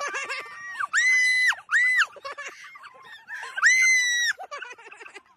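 Young people shriek and scream with excitement nearby, outdoors.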